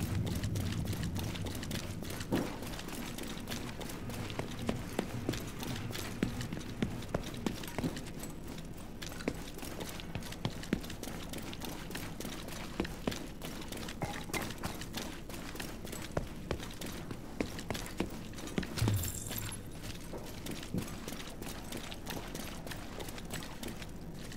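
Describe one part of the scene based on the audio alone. Footsteps splash through shallow water in a large echoing space.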